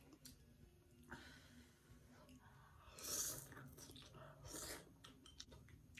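A woman slurps noodles loudly, close by.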